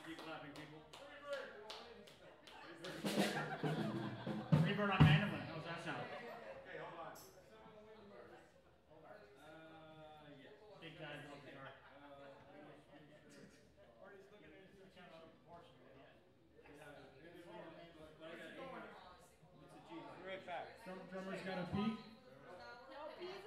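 Drums are struck in a steady beat.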